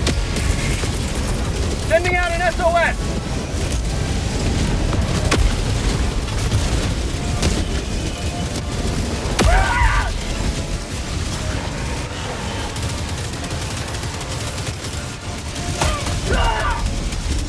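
Gunfire and explosions rumble through a battle.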